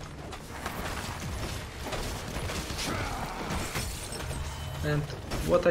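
Battle sound effects of a video game clash and zap.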